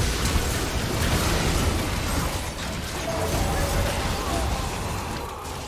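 Game spells crackle and whoosh in a busy fight.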